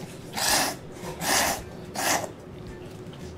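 A young man loudly slurps noodles.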